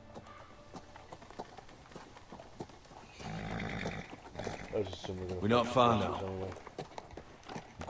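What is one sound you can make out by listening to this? Horse hooves clop slowly on soft ground.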